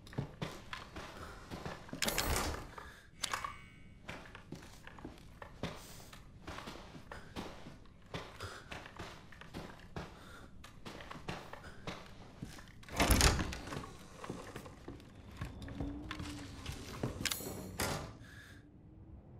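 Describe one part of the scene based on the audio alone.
Footsteps thud steadily across a creaking wooden floor.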